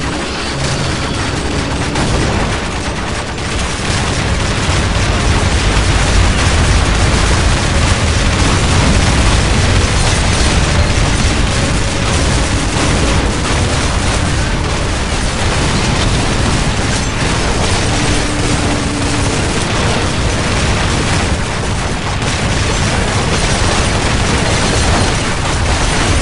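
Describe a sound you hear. A heavy gun fires in rapid, continuous bursts.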